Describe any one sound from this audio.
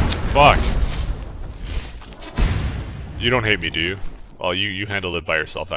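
An electric spell crackles and buzzes.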